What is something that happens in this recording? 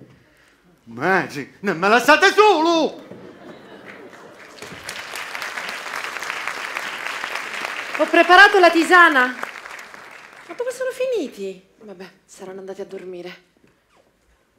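A woman speaks loudly and with animation in a large echoing hall.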